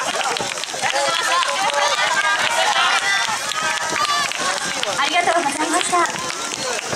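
A group of young dancers shout and chant together.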